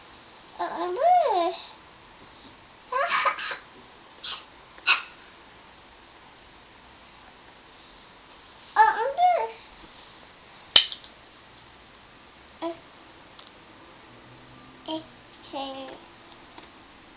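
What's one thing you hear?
A young girl speaks in short, high bursts close by.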